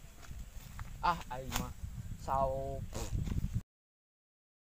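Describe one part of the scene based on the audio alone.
A young man speaks calmly outdoors.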